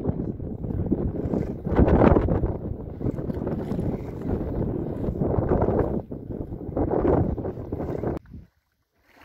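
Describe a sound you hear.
Wind blows hard across the microphone outdoors.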